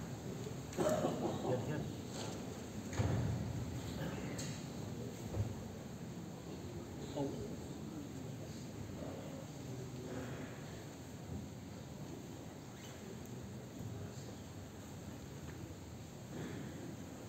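A large crowd shuffles and rustles clothing in a large echoing hall.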